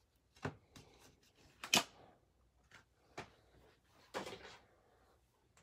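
Plastic card holders click and clack as they are handled.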